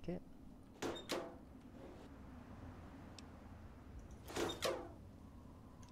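Short metallic chimes ring out as a menu opens and closes.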